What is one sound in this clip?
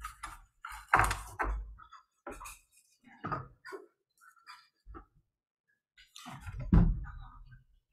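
Small objects are picked up and set down on a table with light knocks.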